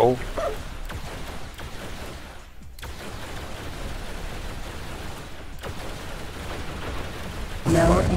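Laser weapons fire in rapid bursts.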